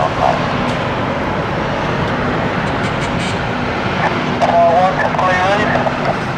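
A jet airliner's engines roar steadily as it rolls along a runway outdoors.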